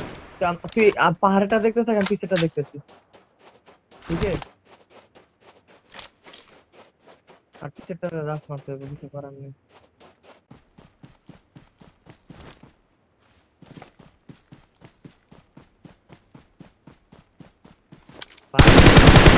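Footsteps run quickly over dirt and grass.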